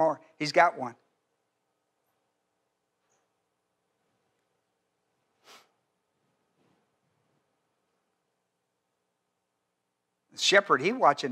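An elderly man speaks with animation through a microphone, pausing at length between phrases.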